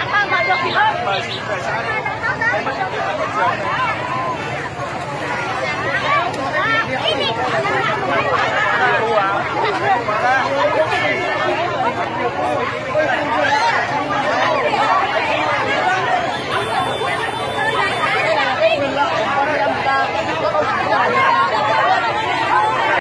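A large crowd of men and women talks and shouts over one another close by, outdoors.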